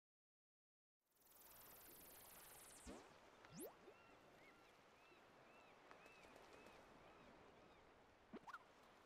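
Bright, bouncy video game music plays.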